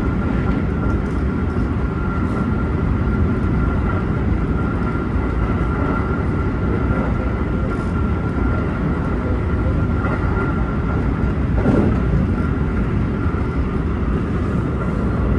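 A train rumbles steadily along the rails, heard from inside the cab.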